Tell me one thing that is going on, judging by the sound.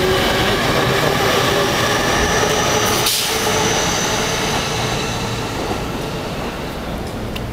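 A train hums and rumbles loudly as it pulls away, then fades.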